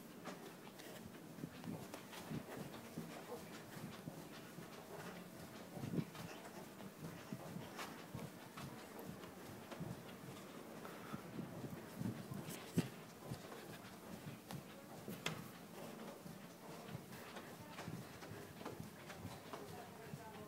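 Footsteps pad softly along a carpeted floor.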